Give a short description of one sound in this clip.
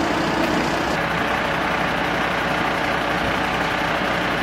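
A fire engine idles with a steady low rumble.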